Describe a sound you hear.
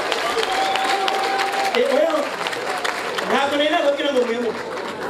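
A large crowd laughs and murmurs nearby.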